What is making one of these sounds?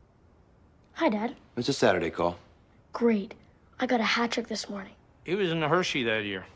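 A young boy talks into a telephone.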